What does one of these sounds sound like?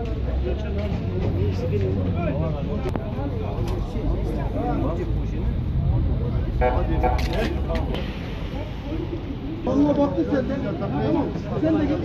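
A crowd of men talk and call out nearby outdoors.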